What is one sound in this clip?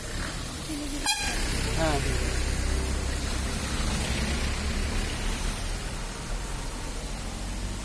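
A bus engine rumbles as the bus passes close by.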